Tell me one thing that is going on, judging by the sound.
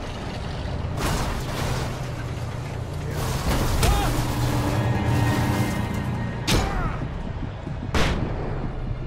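A loud explosion bursts nearby.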